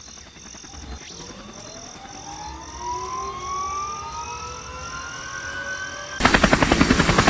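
A helicopter engine whines, rising steadily in pitch as it spools up.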